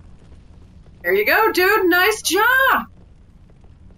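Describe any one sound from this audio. A young man exclaims loudly and excitedly, close to a microphone.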